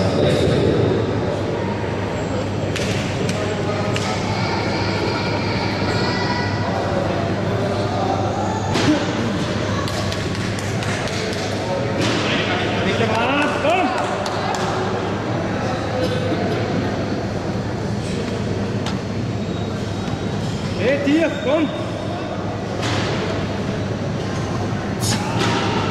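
A crowd of people murmurs and talks in a large echoing hall.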